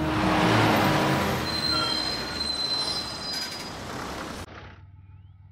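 A bus engine rumbles loudly as the bus passes close by.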